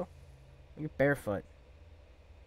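A man speaks briefly and loudly into a close microphone.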